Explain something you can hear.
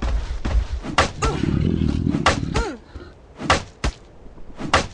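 A weapon strikes a monster with sharp thuds.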